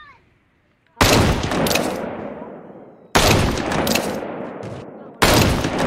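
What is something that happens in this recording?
A rifle fires single loud shots that echo and fade.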